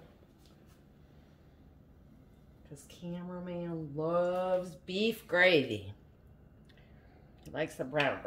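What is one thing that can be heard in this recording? A spoon scrapes and clinks against a pot.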